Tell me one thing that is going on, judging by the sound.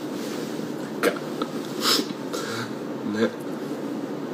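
A young man laughs softly close to a microphone.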